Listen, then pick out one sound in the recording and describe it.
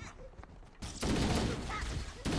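A blast booms and crackles.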